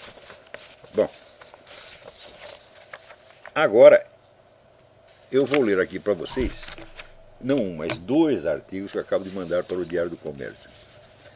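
Paper rustles as it is handled.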